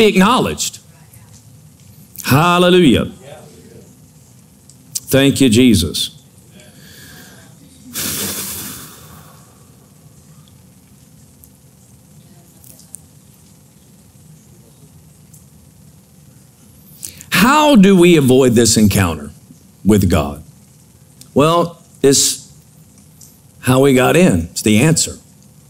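A middle-aged man speaks slowly into a microphone, with long pauses.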